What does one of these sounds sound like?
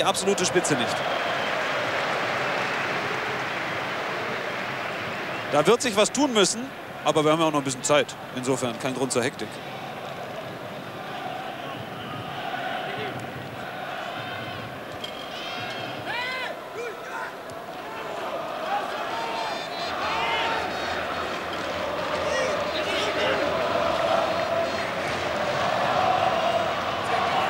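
A large crowd murmurs and chants steadily in an open stadium.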